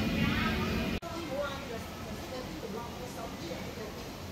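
Water laps softly against a wall.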